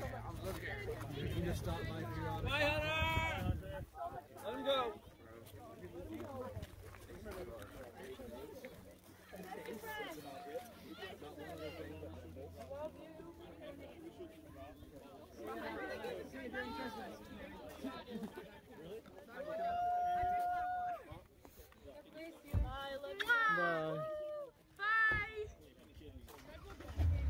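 Young women talk and exclaim excitedly close by, outdoors.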